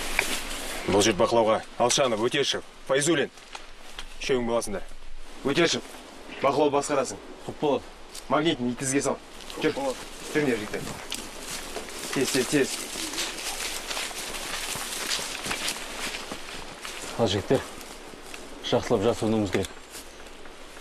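A man speaks firmly and loudly outdoors.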